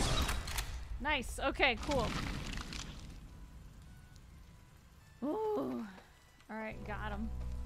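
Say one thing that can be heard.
A young woman speaks casually into a microphone.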